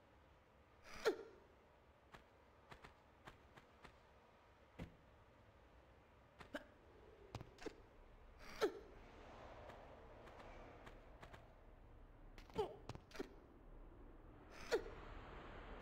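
Heavy thuds sound as a body lands and climbs onto blocks.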